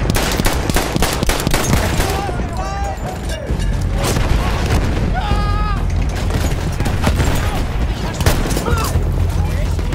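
Rifle shots crack nearby, one after another.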